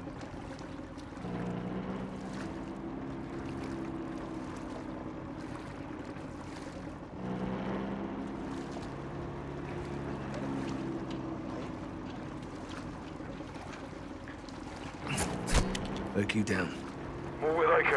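Water sloshes and laps around a slowly moving swimmer.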